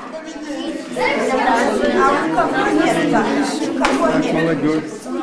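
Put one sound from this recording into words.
An elderly woman speaks with animation nearby.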